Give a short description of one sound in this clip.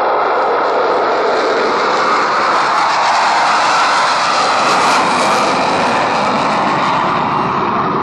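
A jet roar swells and sweeps past overhead.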